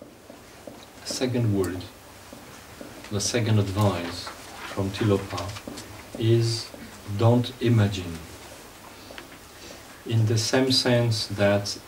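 A man speaks calmly and slowly, close to a microphone.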